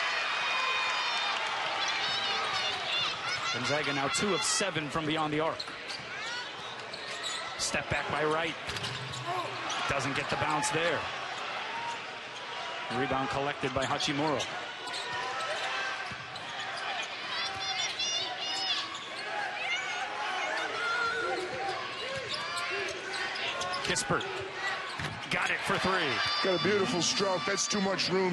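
A crowd murmurs in a large echoing arena.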